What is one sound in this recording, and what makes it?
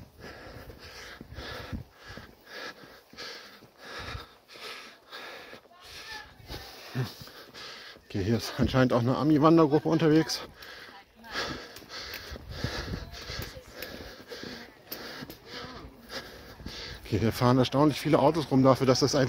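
Footsteps walk steadily on a paved path outdoors.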